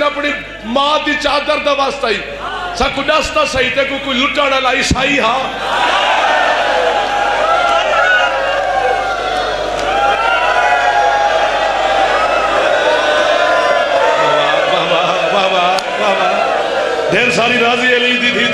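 A man recites with passion through a microphone.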